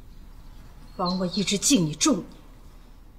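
A woman speaks quietly and with emotion, close by.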